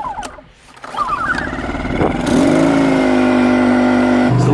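A small generator engine starts up and runs with a steady hum.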